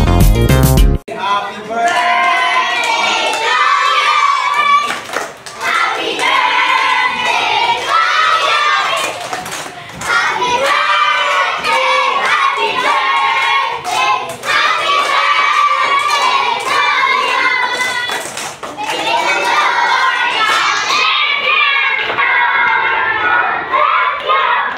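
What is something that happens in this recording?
A group of children sing together loudly.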